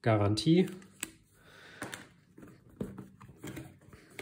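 A cardboard box scrapes and thumps as flaps are folded shut.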